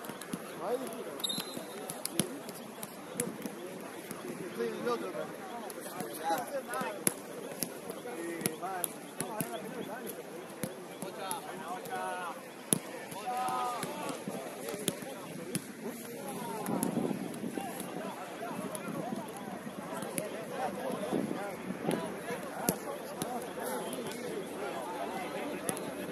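Men and women players shout to each other across an outdoor pitch.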